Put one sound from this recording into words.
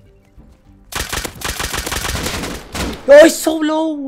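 A gun fires several shots in quick succession.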